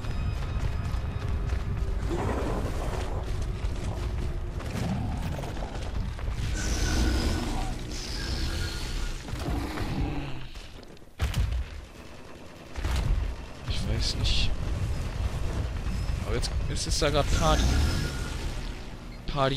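A huge creature's heavy footsteps thud and scrape over rock.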